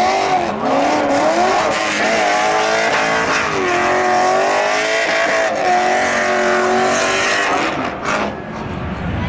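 A car engine revs hard, its pitch rising and falling.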